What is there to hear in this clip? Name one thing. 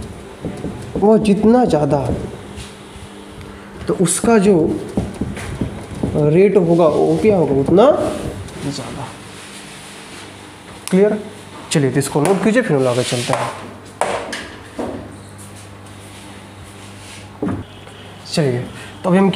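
A young man lectures with animation, close by.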